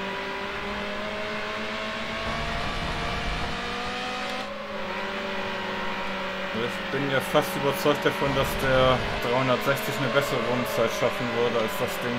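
A racing car engine hums steadily at high speed.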